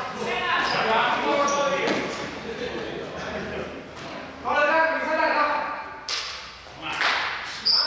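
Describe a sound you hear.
Sneakers squeak and thud on a hard floor.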